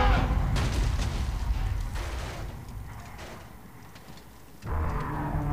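Burning debris rumbles deeply.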